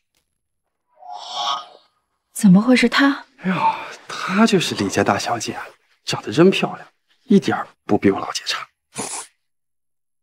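A young man speaks casually, close by.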